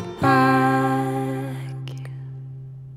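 A woman sings a final held note close to a microphone.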